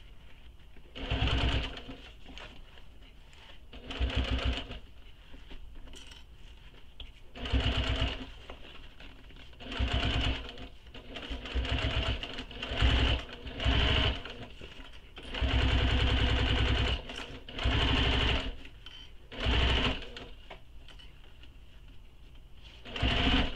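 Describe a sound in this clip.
A sewing machine runs in short bursts, whirring and stitching.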